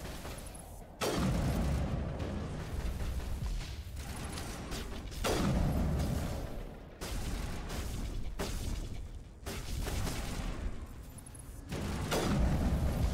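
Rifle shots boom sharply, each followed by a low rumble.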